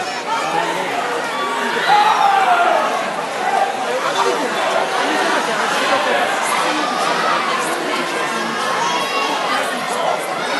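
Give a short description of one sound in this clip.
A crowd of people chatter in a large echoing hall.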